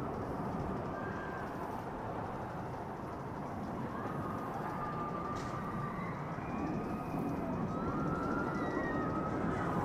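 A roller coaster train rumbles along wooden track in the distance.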